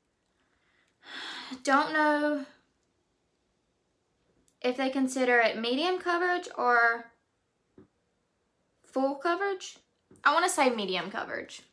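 A young woman talks close to a microphone, pausing between phrases.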